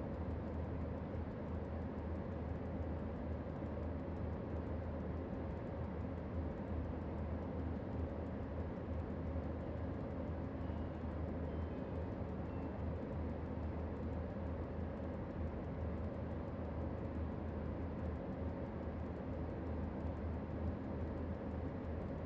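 A locomotive engine hums and rumbles steadily as the train rolls along.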